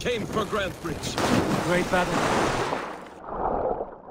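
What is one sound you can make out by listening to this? Water splashes as a swimmer paddles along.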